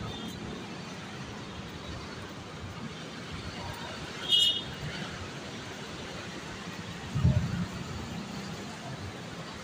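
Distant city traffic hums steadily.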